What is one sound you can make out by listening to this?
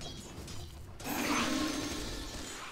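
A spell bursts with a loud whooshing rush.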